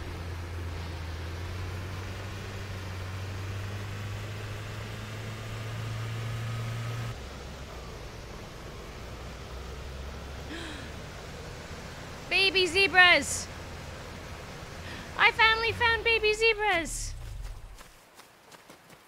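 A vehicle engine rumbles steadily as it drives over grass.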